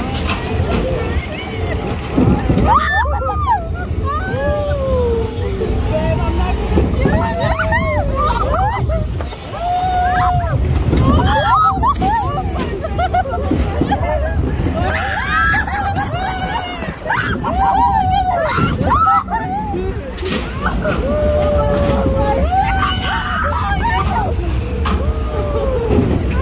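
A ride's cars rumble and clatter along a track.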